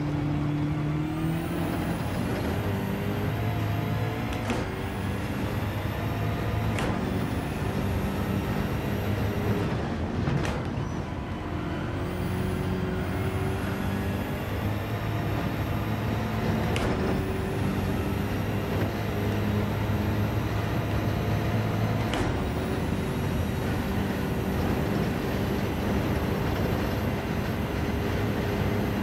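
A racing car engine roars loudly, revving up and shifting gears.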